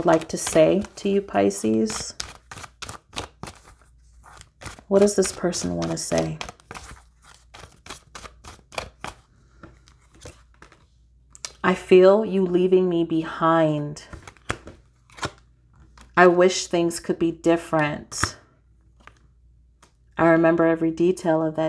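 Playing cards are shuffled by hand with quick soft flicks.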